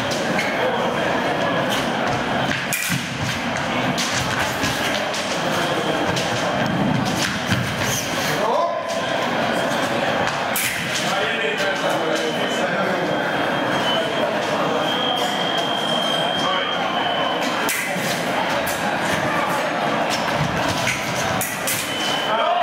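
Fencing blades clash and scrape together.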